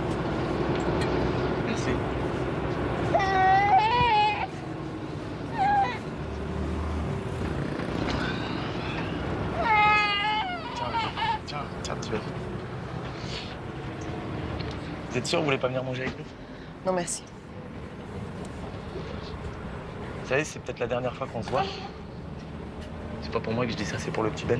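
A city bus hums as it rolls along.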